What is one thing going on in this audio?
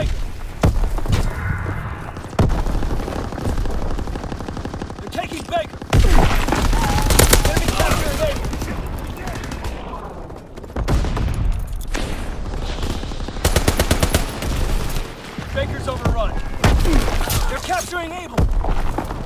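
Rifles fire in sharp, rapid bursts.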